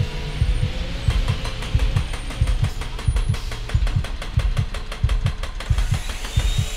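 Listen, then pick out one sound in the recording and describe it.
A jackhammer rattles rapidly against a wall.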